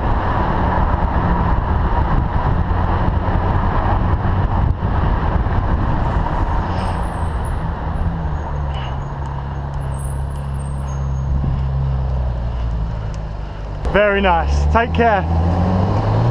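A Ferrari 458 Italia's V8 engine burbles as the sports car rolls along at low speed.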